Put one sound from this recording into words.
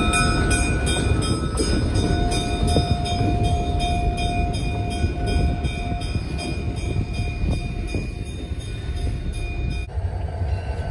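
A diesel locomotive engine rumbles as it passes.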